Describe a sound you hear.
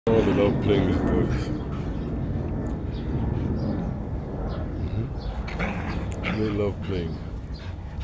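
Two dogs growl and yip as they play-fight close by.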